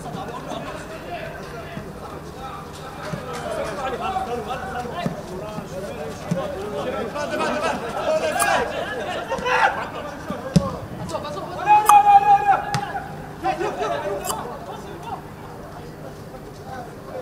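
Players shout across an open field.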